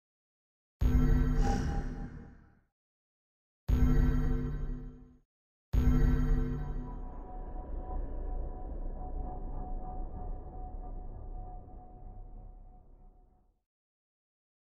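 Game menu tones chime as options are chosen.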